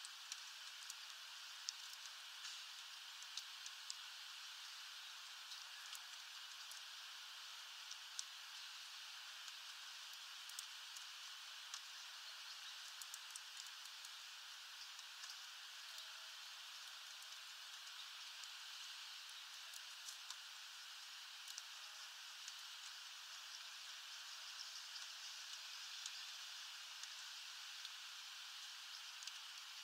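A small bird pecks at seeds with quick taps.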